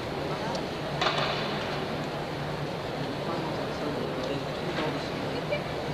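Feet thud on a balance beam.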